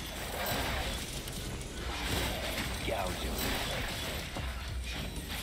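Quick footsteps patter on a stone floor.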